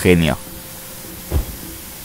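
A large button is pressed with a dull click.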